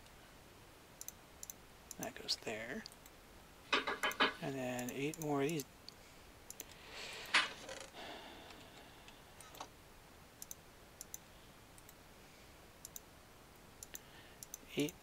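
Soft clicks sound as items are moved in a game menu.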